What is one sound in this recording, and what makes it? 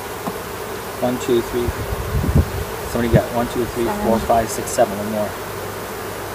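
Wooden hive frames knock and scrape as they are handled.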